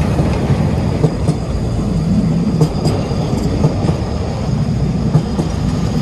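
Train wheels clack rhythmically over rail joints.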